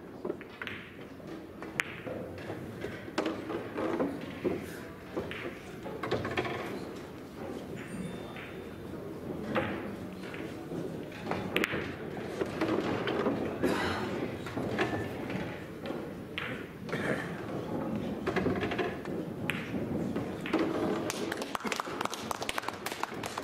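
A cue sharply strikes a pool ball, and balls click together.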